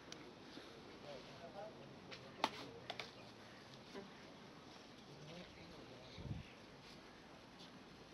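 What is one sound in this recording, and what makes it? Several men murmur prayers quietly nearby.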